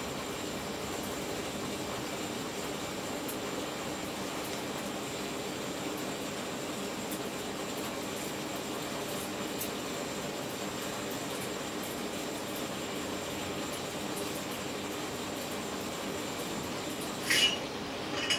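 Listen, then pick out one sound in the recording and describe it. A television gives off a faint, steady high electrical whine.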